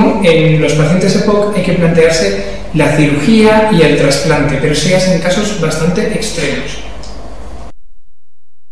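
A young man speaks steadily into a close microphone.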